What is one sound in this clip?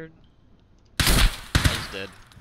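A rifle shot bangs loudly.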